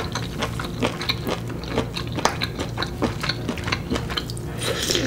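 A woman chews and slurps noodles wetly, close to a microphone.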